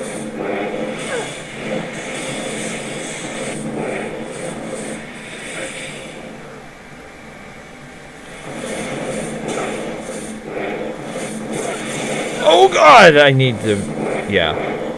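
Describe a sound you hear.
Lightning bolts zap and crackle.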